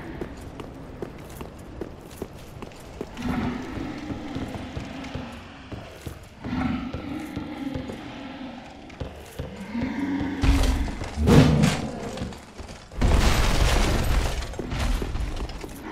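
Armoured footsteps clank on stone and wooden boards.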